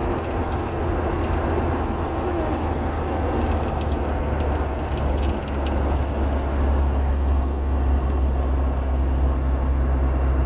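Tyres roll on asphalt with a steady rumble.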